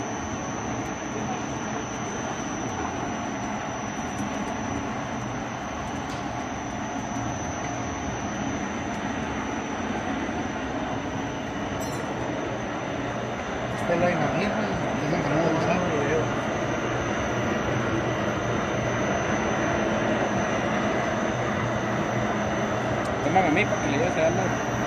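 A rope-making machine hums and whirs steadily.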